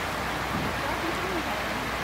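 Water rushes and splashes over rocks.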